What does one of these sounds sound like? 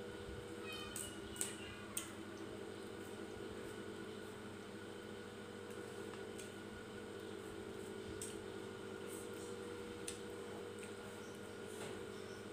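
Shrimp shells crackle as they are peeled by hand.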